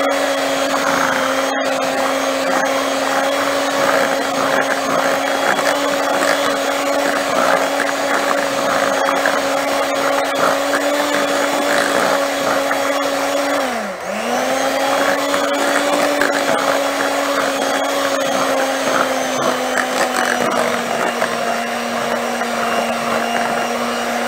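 Mixer beaters whisk and slosh through a thick batter.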